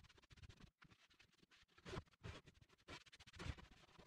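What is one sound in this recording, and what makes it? A sanding sponge rubs against a wooden box.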